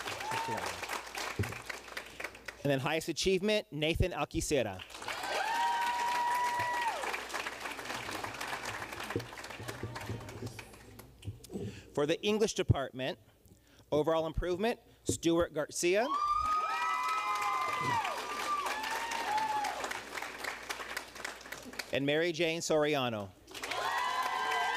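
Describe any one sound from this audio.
An audience claps steadily.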